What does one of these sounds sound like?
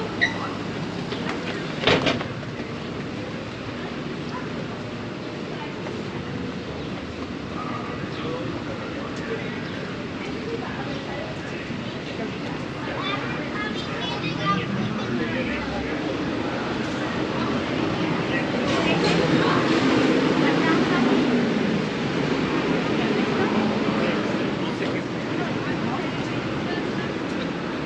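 Street noise hums steadily outdoors.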